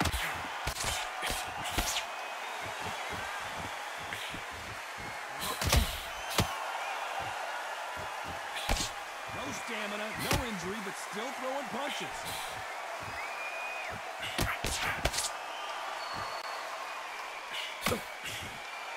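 Punches thud against a body in quick bursts.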